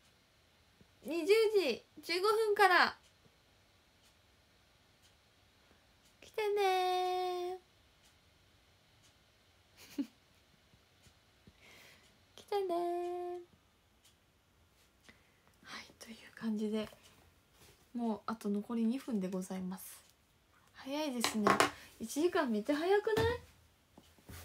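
A young woman speaks up close with animation, in short bursts.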